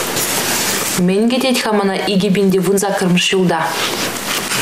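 A young woman reads aloud in a calm, clear voice.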